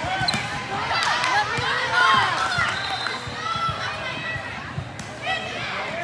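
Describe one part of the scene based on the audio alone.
A volleyball is hit with a sharp smack.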